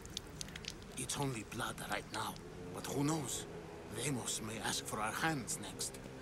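A man speaks in a low, menacing voice with animation.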